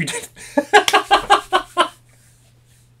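A young man claps his hands rapidly.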